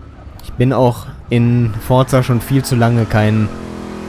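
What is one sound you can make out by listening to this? Tyres squeal as a car slides through a bend.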